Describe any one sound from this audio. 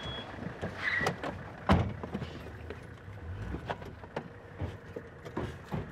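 A car door opens and shuts with a thud.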